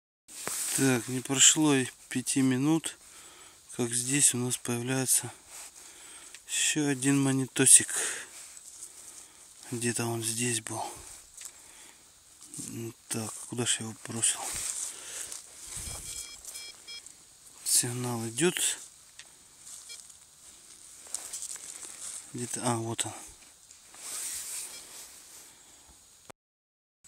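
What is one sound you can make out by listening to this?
Dry leaves rustle and crunch as a hand digs through them.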